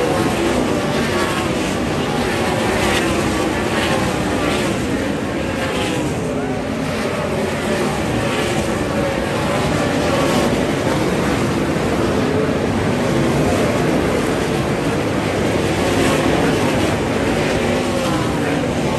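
Race car engines roar loudly and rise and fall as they pass.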